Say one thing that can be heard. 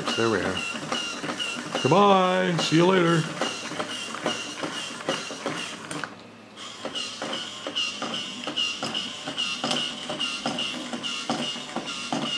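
A toy robot clatters with rapid mechanical clicks as it walks.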